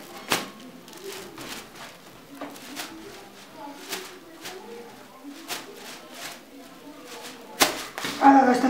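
Kite paper rustles and crinkles as hands handle it.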